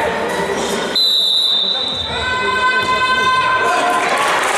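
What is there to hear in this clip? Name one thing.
A referee blows a sharp whistle in a large echoing hall.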